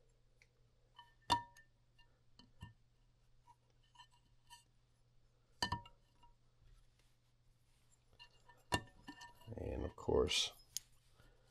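Metal engine parts clink and click as they are handled.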